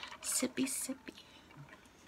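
A woman sips through a straw.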